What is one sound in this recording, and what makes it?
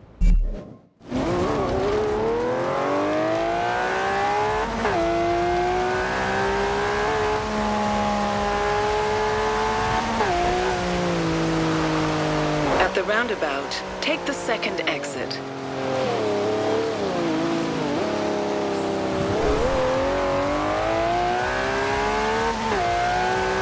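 A V12 supercar engine revs hard through the gears.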